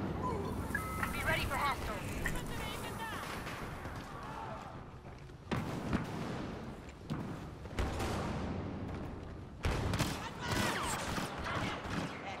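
Laser blasters fire in quick, zapping bursts.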